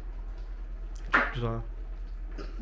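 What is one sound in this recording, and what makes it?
A young woman gasps and coughs after drinking.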